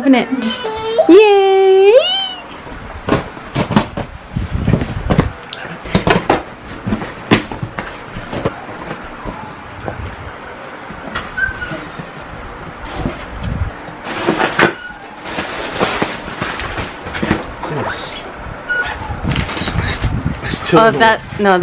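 Cardboard rustles and scrapes as a box is handled and opened.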